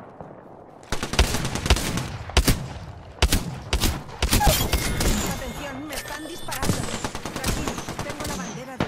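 Gunfire bursts out in rapid, loud shots.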